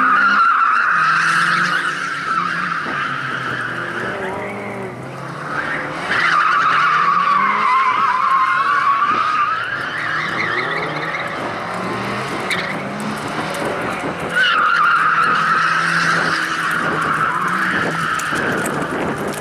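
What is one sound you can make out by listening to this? A four-cylinder Lada rally car engine revs hard through tight turns.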